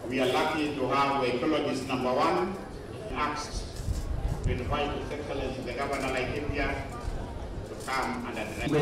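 An older woman speaks in a steady, earnest voice close by.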